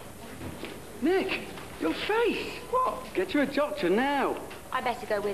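A woman sings loudly with a swooping voice.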